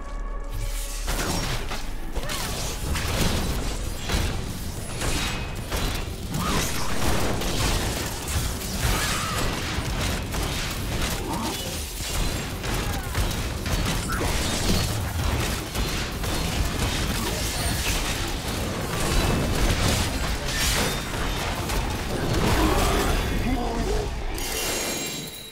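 Magic blasts and fiery explosions crackle and boom in quick succession.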